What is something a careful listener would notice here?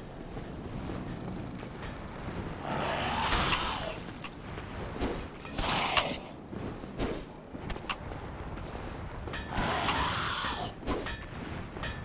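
Metal weapons clang sharply against each other.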